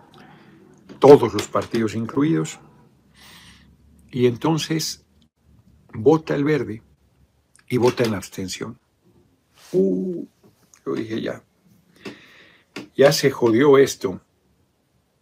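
A middle-aged man speaks calmly in short phrases, heard through an online call.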